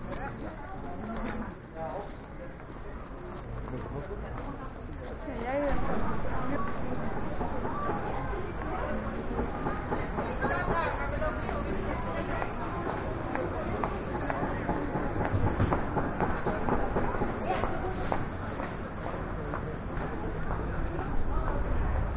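A crowd of men and women chatters nearby on a busy street.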